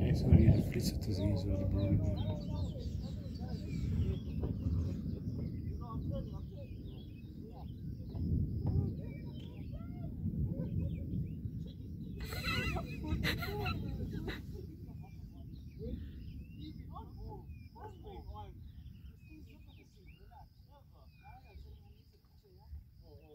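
Wind gusts outdoors with a low buffeting rumble that slowly eases.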